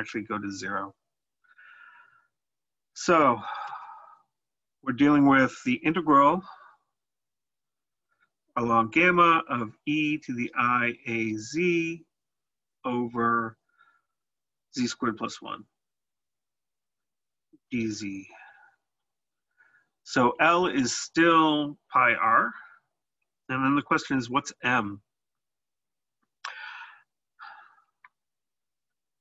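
A man explains calmly, close to a microphone, with short pauses.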